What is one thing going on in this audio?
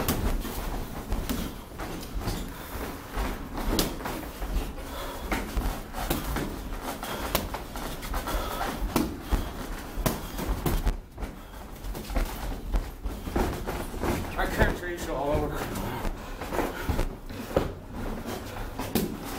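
Boxing gloves thud against pads and bodies in quick bursts.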